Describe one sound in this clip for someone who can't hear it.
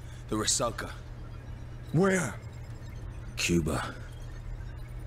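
A man speaks in short, brief phrases close to a microphone.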